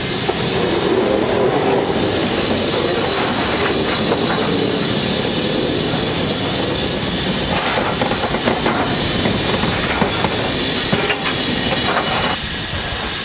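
Railway carriage wheels squeal on a curve.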